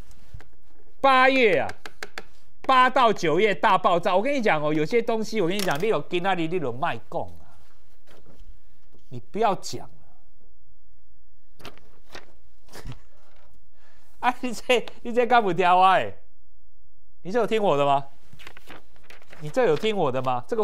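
A middle-aged man talks with animation into a microphone, in bursts with pauses.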